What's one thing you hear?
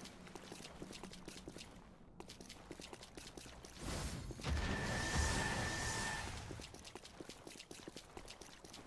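Footsteps splash quickly through shallow water.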